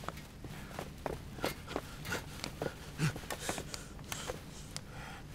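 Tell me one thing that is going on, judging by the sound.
A man shouts in strained bursts close by.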